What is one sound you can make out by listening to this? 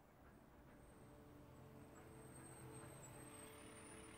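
A truck engine rumbles.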